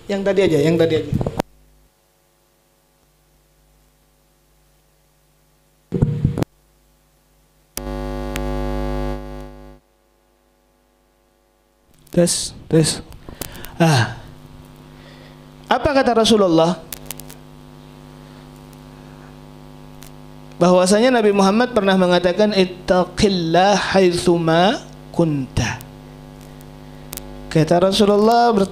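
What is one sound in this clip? A young man speaks into a microphone with animation, heard through a loudspeaker in an echoing room.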